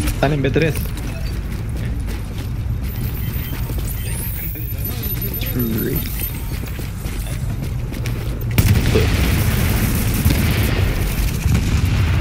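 Rapid gunshots crack and echo between buildings.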